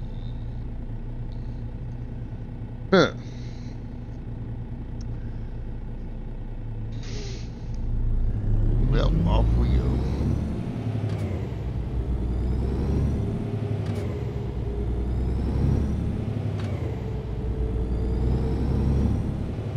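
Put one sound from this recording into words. A truck engine idles with a low rumble, then grows louder as the truck pulls away and speeds up.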